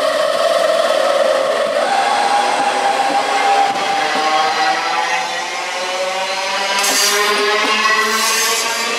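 An electric train pulls away with a rising whine of its motors.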